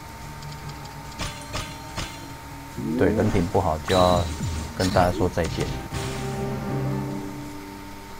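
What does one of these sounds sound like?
Game effects chime and burst as gems clear and attacks land.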